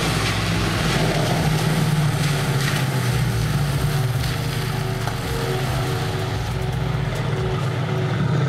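A powerful car engine rumbles at a low idle close by.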